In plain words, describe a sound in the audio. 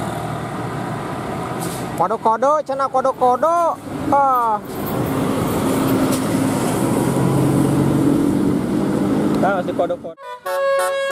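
A bus engine rumbles loudly as it passes close by.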